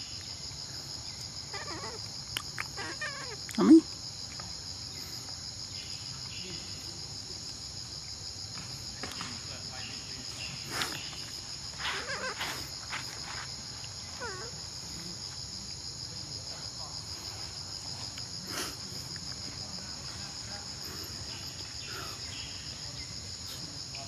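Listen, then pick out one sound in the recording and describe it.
A baby monkey munches and nibbles on a piece of fruit.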